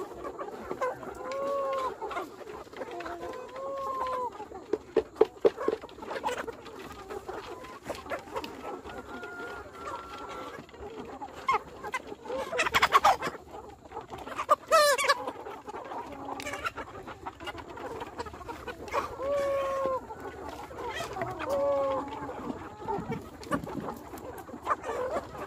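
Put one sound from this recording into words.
Chickens peck grain from a bamboo feeder.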